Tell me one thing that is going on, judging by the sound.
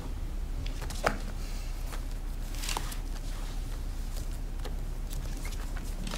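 Book pages rustle as they are leafed through.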